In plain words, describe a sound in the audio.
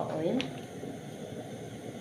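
Oil pours into a pan.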